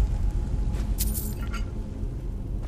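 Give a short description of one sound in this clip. Coins clink briefly.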